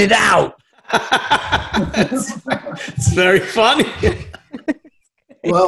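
A man laughs heartily over an online call.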